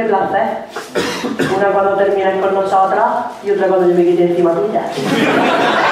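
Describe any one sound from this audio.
A man sings into a microphone on a stage, heard through loudspeakers.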